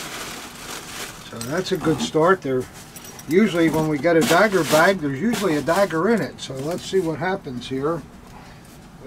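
Cardboard and plastic wrapping rustle as a box is unpacked.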